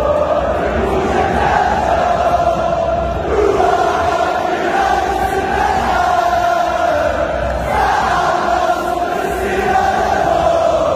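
A large stadium crowd chants loudly in unison, echoing through the open air.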